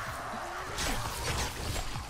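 A zombie snarls close by.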